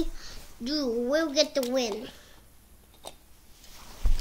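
Plastic toy trucks knock and clatter on the floor.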